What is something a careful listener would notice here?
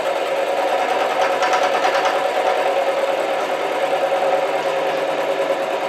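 A milling cutter grinds steadily into a metal block with a high whine.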